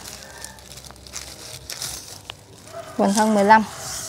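A plastic tie rustles as it is wrapped around a tree trunk.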